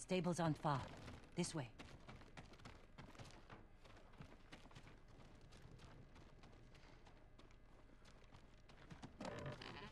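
Footsteps creak softly on a wooden floor.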